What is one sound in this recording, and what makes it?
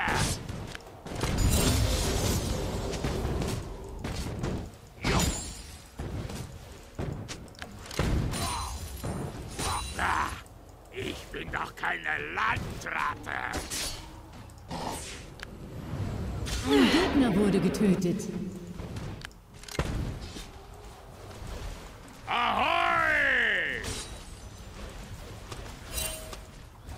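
Game fight sounds of spells bursting and weapons striking come in quick, busy bursts.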